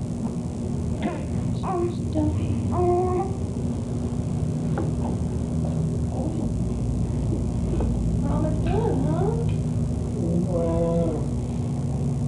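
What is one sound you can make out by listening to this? A woman speaks softly in a lilting, sing-song voice close by.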